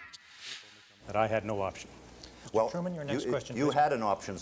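A man speaks with animation into a microphone in an old recording.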